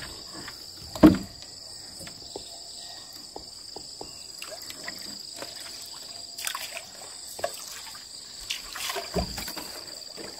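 Wood knocks against a small wooden boat.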